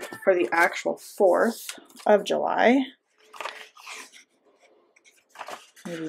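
A sticker peels off with a soft paper rustle.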